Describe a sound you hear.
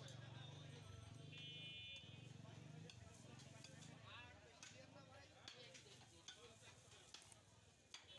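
A cleaver chops through meat onto a wooden block.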